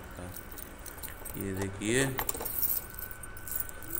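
A padlock clicks open.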